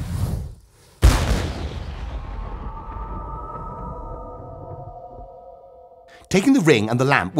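A magical chime rings out and slowly fades.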